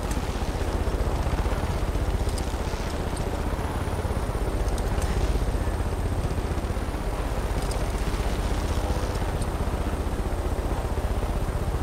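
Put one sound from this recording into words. A helicopter's rotor thumps rapidly and steadily close overhead.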